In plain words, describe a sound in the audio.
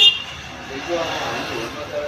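A motorcycle passes by on a road.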